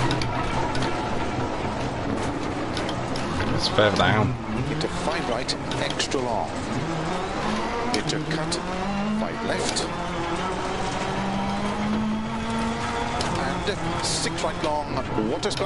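A rally car engine revs hard, rising and falling as gears change.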